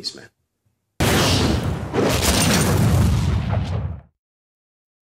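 A loud explosion booms and roars, then fades.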